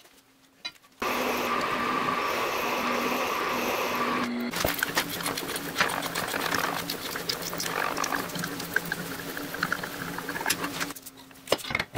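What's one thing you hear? A drill press whirs steadily as it bores into metal.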